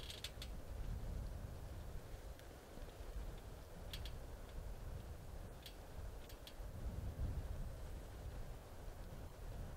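A deer's hooves rustle softly through dry leaves and twigs.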